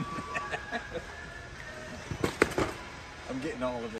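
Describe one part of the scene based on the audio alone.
A cardboard box drops into a shopping cart with a thump.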